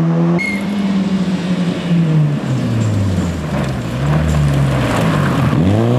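Tyres skid and crunch on loose gravel.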